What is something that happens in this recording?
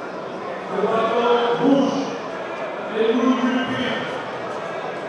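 Spectators shout encouragement loudly.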